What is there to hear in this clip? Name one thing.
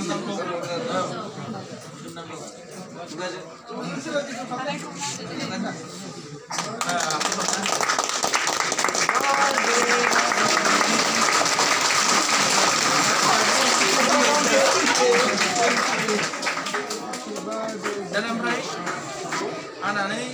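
Several men and women talk and chatter nearby.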